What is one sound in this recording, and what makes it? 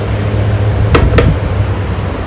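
A fan's push button clicks twice.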